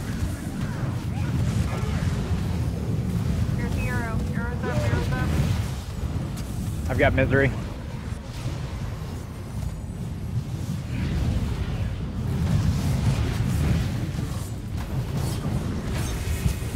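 Magic spells whoosh and rumble in a loud video game battle.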